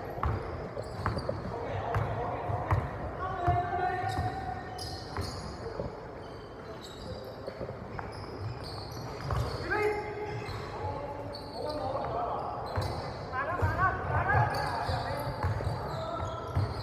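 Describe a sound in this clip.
A basketball bounces on a wooden floor in a large echoing hall.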